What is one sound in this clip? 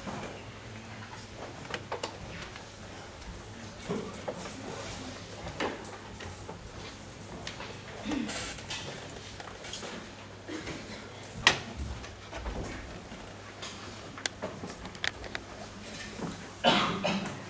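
Music stands and chairs knock and clatter.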